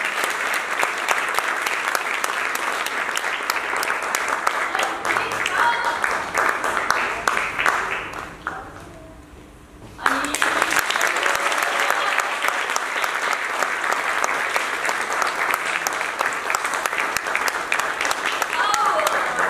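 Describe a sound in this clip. A crowd claps and applauds loudly in a large hall.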